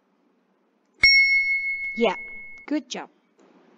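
A bright chime rings out once and holds briefly.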